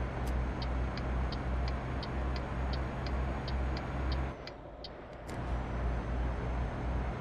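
A truck engine drones with a steady low rumble, easing off briefly.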